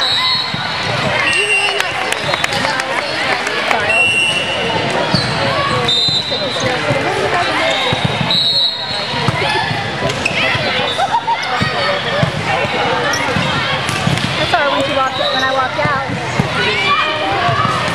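A crowd of spectators chatters and cheers loudly in a large echoing gym.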